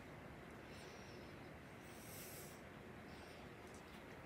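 A kitten chews and licks at sardines.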